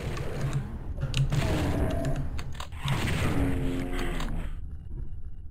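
A monster growls and shrieks in a game.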